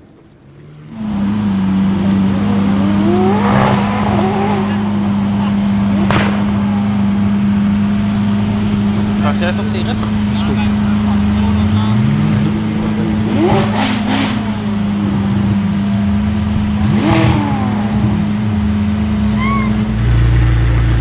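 A sports car engine idles with a steady, loud drone.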